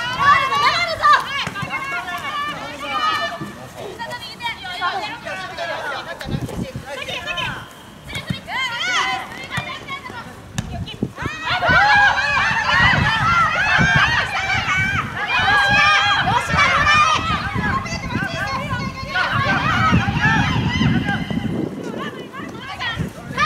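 Young women shout to one another across an open field.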